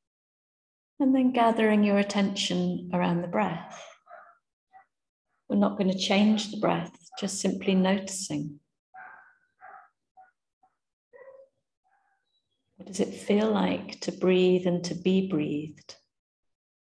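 A young woman speaks calmly, in short phrases with pauses.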